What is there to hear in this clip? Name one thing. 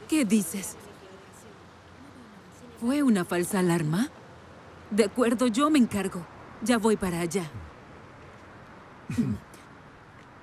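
An older woman talks with animation, close by.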